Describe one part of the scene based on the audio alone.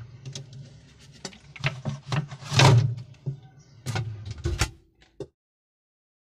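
A refrigerator door rattles and clatters.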